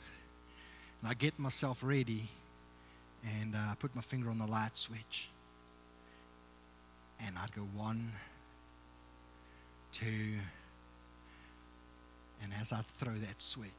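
A man speaks with animation in short bursts, heard through a microphone in a room with slight echo.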